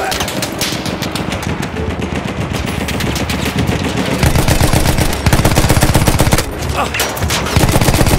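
A heavy machine gun fires rapid bursts close by.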